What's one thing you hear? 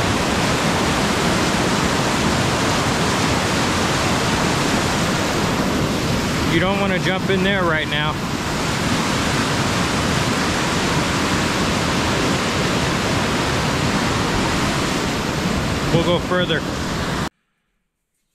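A swollen river rushes and roars loudly close by.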